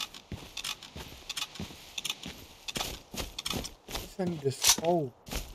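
A rifle bolt clicks and clacks as it is reloaded.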